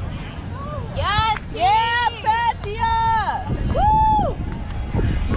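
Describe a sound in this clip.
A young woman calls out loudly.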